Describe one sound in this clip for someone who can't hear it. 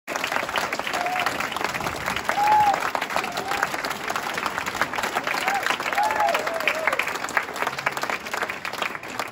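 A crowd applauds steadily in a large room.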